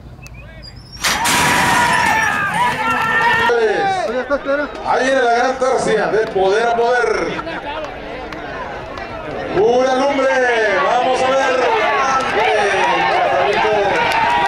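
A crowd of men and women shout and cheer loudly nearby.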